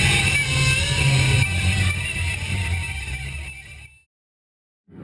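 A rock band plays loudly on stage.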